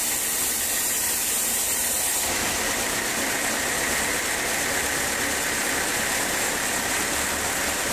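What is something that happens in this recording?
A band saw whines steadily as it cuts through a large log.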